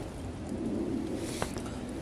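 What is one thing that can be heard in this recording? A young woman gulps a drink.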